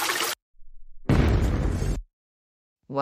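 A ship crashes into an iceberg with a deep rumbling boom.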